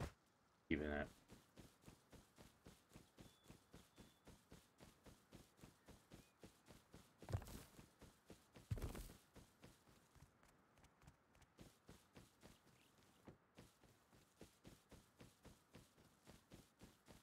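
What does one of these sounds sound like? Quick footsteps rustle steadily through grass.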